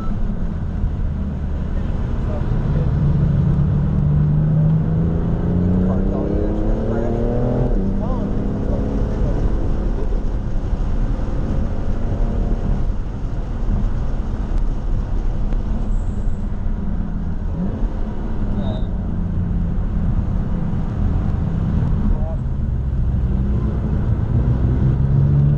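Wind and tyre noise rush steadily around the car.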